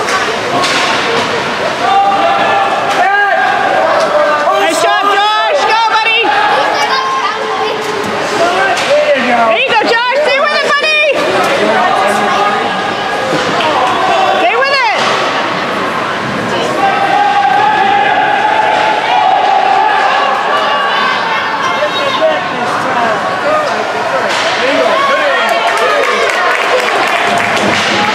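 A crowd of spectators chatters and cheers in an echoing rink.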